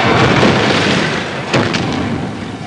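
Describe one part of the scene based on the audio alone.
A car explodes with a loud boom.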